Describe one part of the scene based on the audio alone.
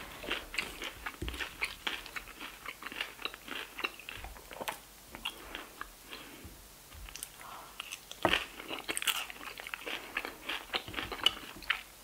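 A metal spoon scrapes against a plate.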